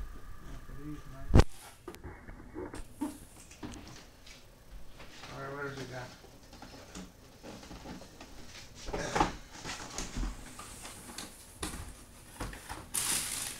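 Cardboard boxes knock and thump as they are moved and set down.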